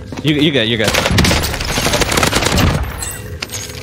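Gunshots crack rapidly in quick bursts.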